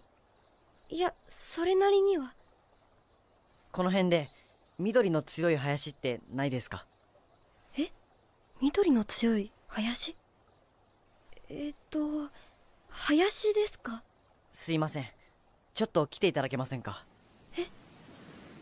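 A young girl speaks with curiosity.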